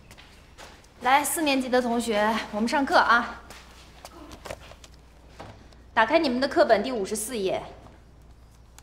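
A young woman speaks calmly and clearly to a class.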